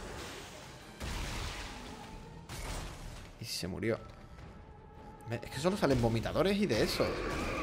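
A plasma gun fires sharp, loud bursts.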